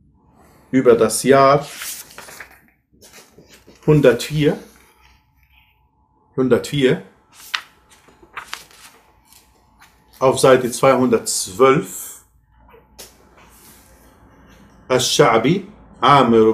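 Paper pages rustle as a book is handled.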